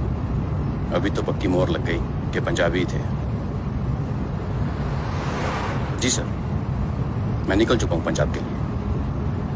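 A middle-aged man speaks into a phone in short bursts.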